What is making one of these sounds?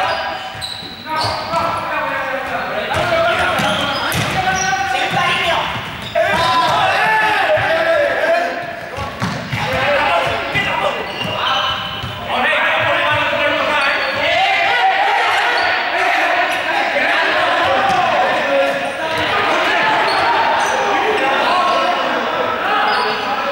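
Balls bounce on a hard floor.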